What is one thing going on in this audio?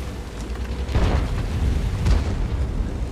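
Tank guns fire with heavy booms.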